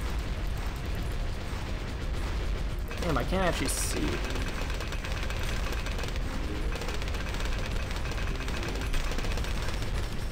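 Rapid popping and blasting game sound effects play nonstop.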